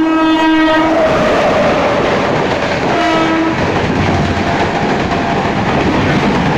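A passenger train rushes past close by with a loud roar.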